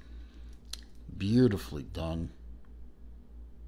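A metal watch bracelet clinks softly as hands handle it.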